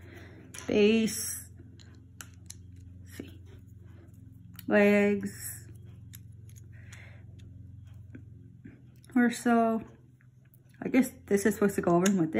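Small plastic toy bricks click and snap together.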